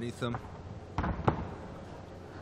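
Bodies thump onto a padded mat.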